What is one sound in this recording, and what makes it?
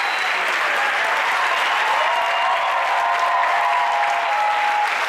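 A large choir sings with an orchestra in a big echoing hall.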